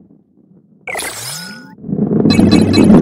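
A rising whoosh sweeps upward.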